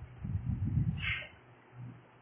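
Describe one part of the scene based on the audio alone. Sheets of paper rustle briefly.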